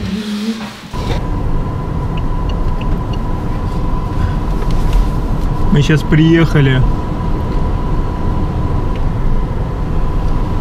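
A car engine rumbles steadily while driving.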